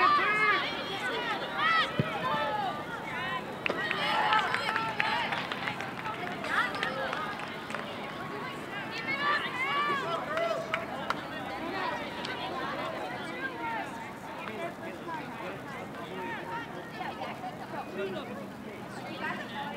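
Young women shout and call out to each other across an open field outdoors.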